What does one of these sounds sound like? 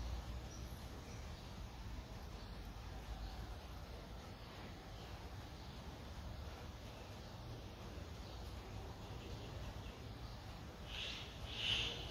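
A small bird chirps softly close by.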